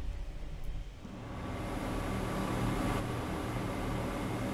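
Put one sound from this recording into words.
A train's electric motors hum steadily as it rolls along the rails.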